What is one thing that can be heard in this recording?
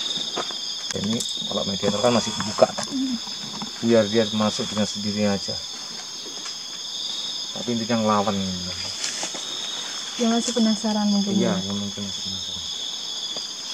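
A young woman speaks quietly close by, in short phrases.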